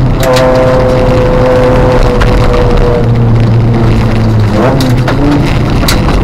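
Gravel rattles and pings against the underside of a car.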